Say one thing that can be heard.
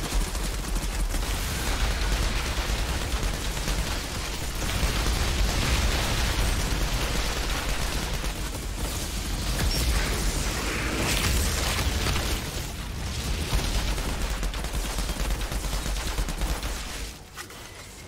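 Guns fire rapidly in bursts.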